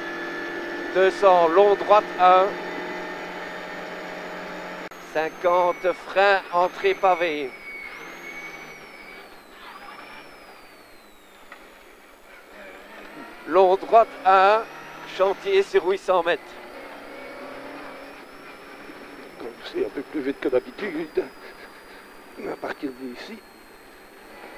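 A man reads out notes quickly in short bursts through a helmet intercom.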